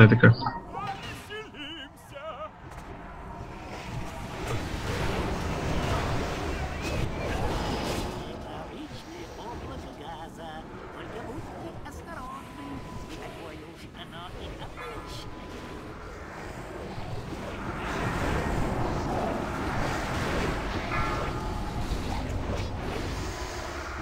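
Battle sound effects of spells and blows clash and whoosh continuously.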